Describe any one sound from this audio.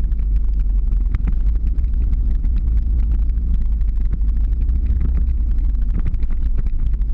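Skateboard wheels roll and rattle on rough asphalt.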